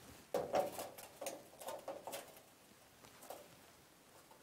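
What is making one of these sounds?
Objects clatter and knock as a man rummages close by.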